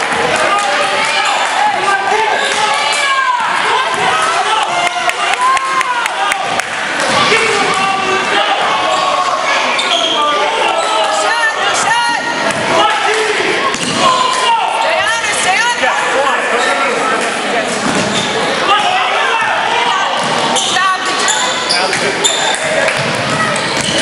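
A crowd of spectators calls out and cheers in an echoing gym.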